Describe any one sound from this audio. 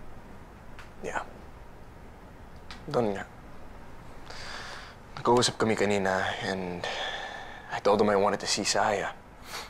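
A young man speaks quietly and earnestly, close by.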